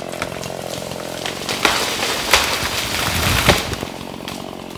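A tree cracks and crashes to the ground with snapping branches.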